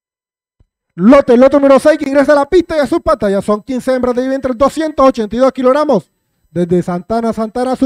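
A man speaks quickly and with animation through a microphone.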